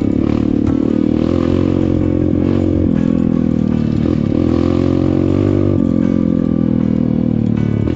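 Tyres rattle and bump over a rough dirt track.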